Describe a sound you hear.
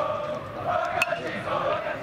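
A baseball bat strikes a ball.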